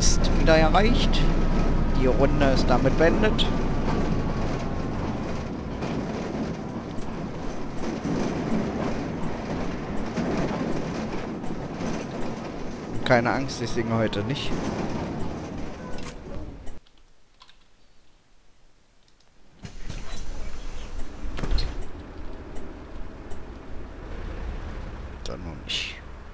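A bus engine rumbles and hums while driving.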